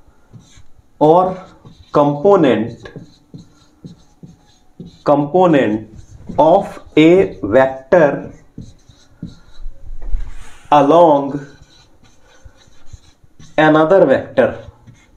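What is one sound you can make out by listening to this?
A man speaks clearly and calmly, close by, in short phrases.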